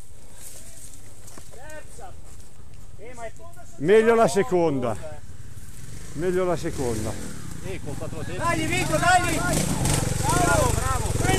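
Several men talk and call out to each other in the woods.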